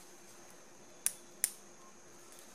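A metal hair clip clicks.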